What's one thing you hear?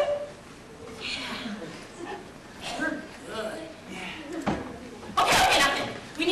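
A young woman speaks playfully.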